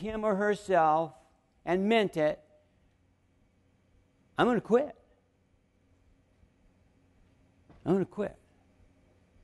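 An older man speaks calmly into a microphone in short phrases with pauses.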